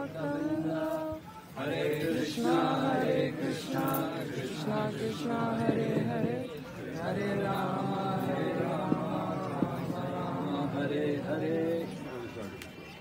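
An elderly man sings through a microphone.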